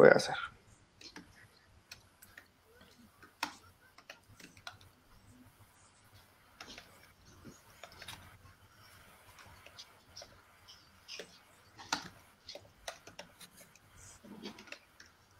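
Computer keys click irregularly as someone types.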